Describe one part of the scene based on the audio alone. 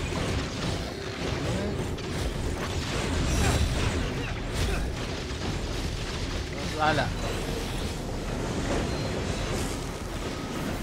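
Spells and blasts boom and crackle in quick bursts.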